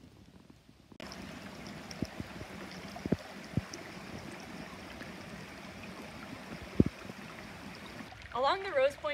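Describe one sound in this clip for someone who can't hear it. A stream trickles and burbles over rocks.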